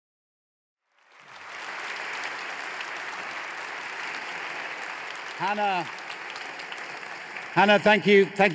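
An audience murmurs and applauds in a large hall.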